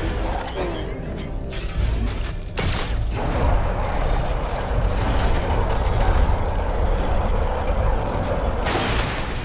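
A heavy vehicle engine rumbles steadily.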